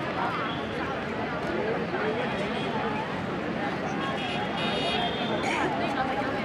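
A crowd of children chatters and calls out nearby outdoors.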